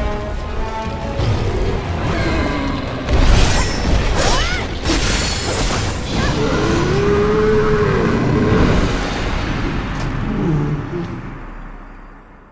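A huge beast roars and growls loudly.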